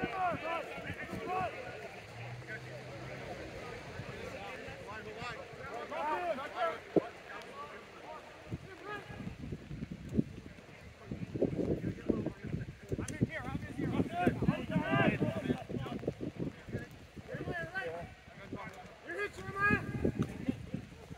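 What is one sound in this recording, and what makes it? Men shout and call to each other outdoors, some near and some farther off.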